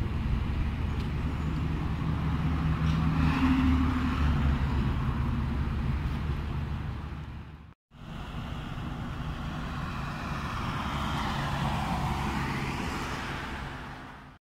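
Traffic passes steadily on a busy road outdoors.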